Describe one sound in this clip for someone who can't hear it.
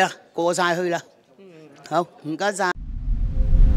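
A middle-aged woman speaks with animation into a close microphone.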